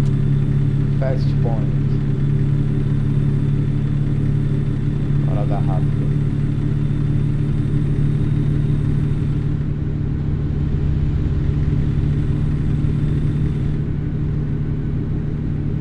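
Tyres roll on a road at speed.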